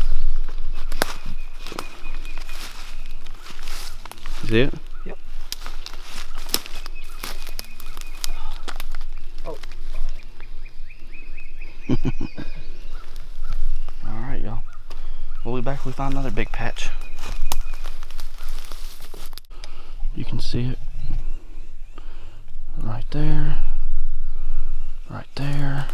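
Footsteps crunch through dry leaves and twigs.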